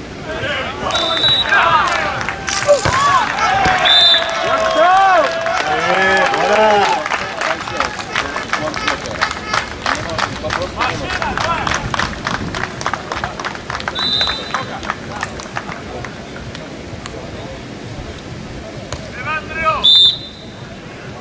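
A referee's whistle blows short sharp blasts.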